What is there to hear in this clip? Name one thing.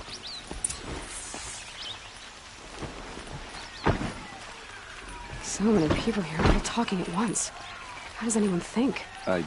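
Footsteps thud on a dirt path.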